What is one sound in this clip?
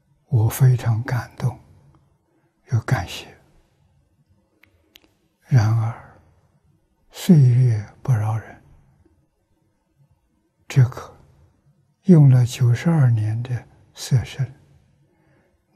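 An elderly man speaks slowly and calmly into a close microphone, with pauses.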